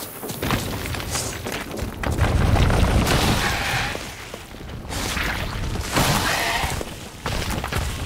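A sword swings and strikes in a fight.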